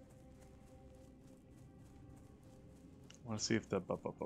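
Footsteps patter softly on grass.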